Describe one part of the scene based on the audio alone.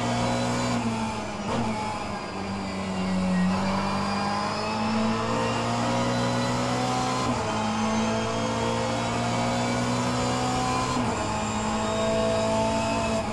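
A simulated race car engine roars and shifts through gears over loudspeakers.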